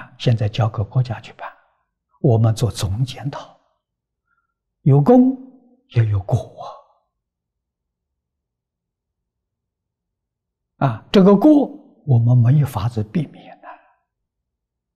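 An elderly man speaks calmly and slowly into a close microphone, with pauses.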